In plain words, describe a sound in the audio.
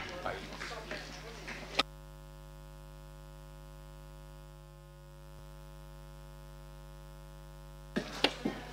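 A woman speaks calmly through a microphone in an echoing hall.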